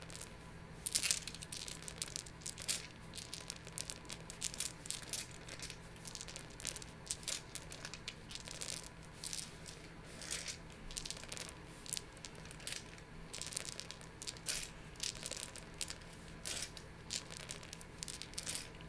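Dice clatter and tumble across a padded table, over and over.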